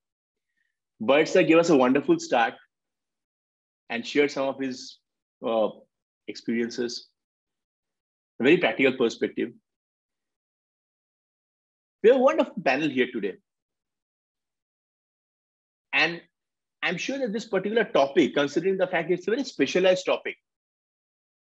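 A man talks calmly in bursts over an online call, with pauses between phrases.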